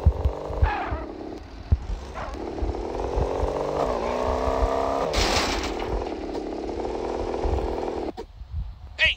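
Music plays from a car radio.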